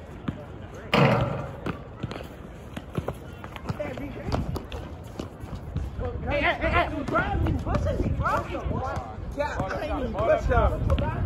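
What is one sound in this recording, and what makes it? A basketball bounces repeatedly on an outdoor court.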